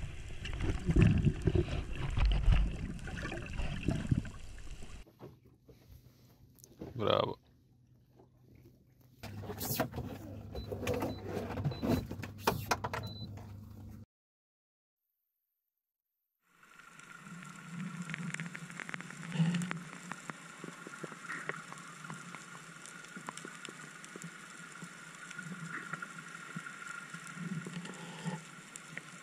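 Muffled water rushes and bubbles underwater.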